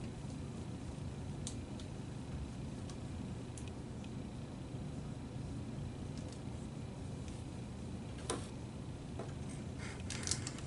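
Plastic film crinkles and rustles as a light wing is handled.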